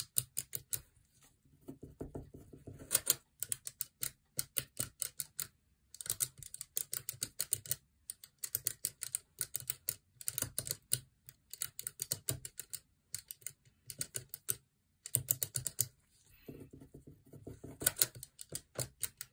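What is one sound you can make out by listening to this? Fingers flick abacus beads rapidly in clicking bursts.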